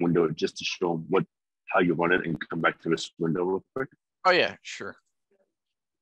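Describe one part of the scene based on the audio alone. A man talks calmly into a microphone.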